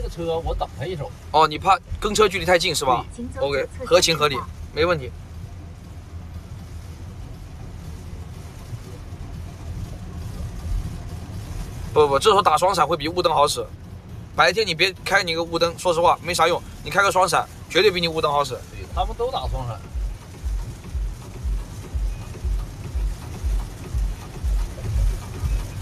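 Tyres hiss on a wet road as a car drives.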